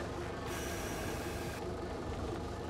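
Water sprays with a loud hiss.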